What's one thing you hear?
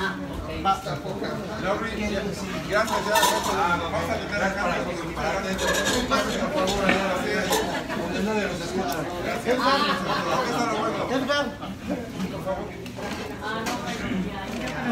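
Several men and women talk and laugh loudly close by.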